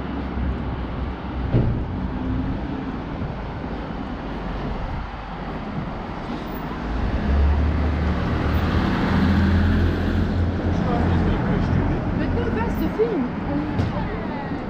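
Steady street traffic rumbles by outdoors.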